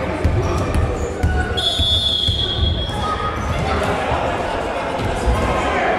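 A ball bounces on a hard floor.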